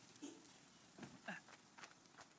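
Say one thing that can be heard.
Soft scuffing steps sound as a figure climbs a rock face.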